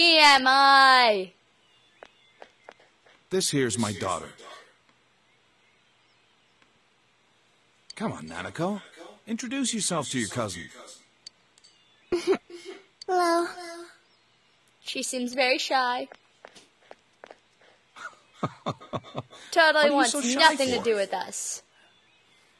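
A young woman talks with animation close to a microphone, in short bursts.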